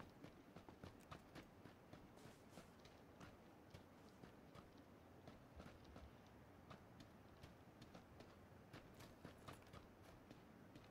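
Footsteps crunch quickly over dry grass and dirt.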